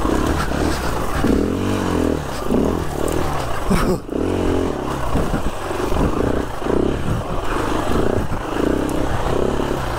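Bushes scrape and brush against a dirt bike.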